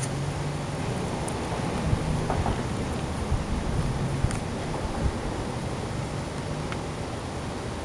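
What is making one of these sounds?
A guinea pig chews food with soft, quick crunches.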